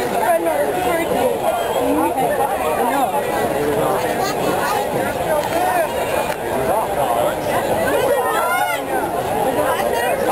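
A crowd of spectators chatters steadily nearby, heard outdoors.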